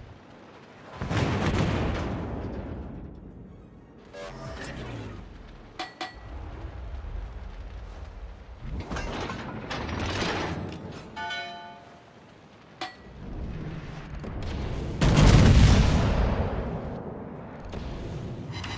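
Battleship main guns fire in deep, rumbling booms in a naval combat game.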